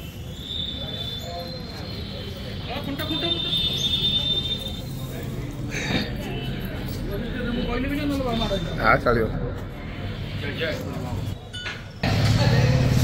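People talk nearby among a small crowd.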